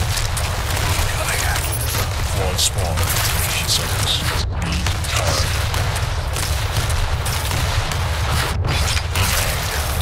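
Rapid gunfire crackles and blasts.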